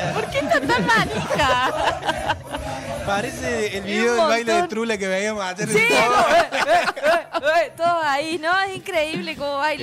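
A young man talks and laughs with animation into a microphone.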